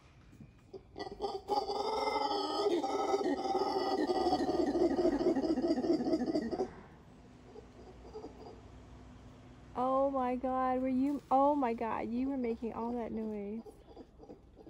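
A monkey calls out loudly with rising and falling cries from the treetops.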